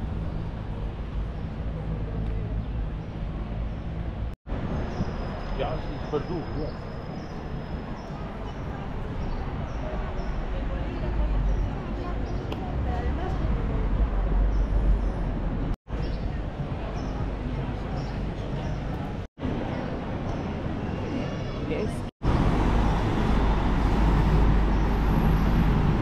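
Distant city traffic hums steadily.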